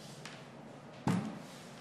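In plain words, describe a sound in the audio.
Test probes knock lightly against each other.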